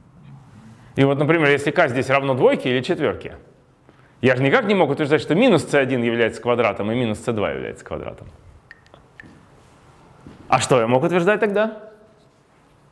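A man lectures calmly nearby.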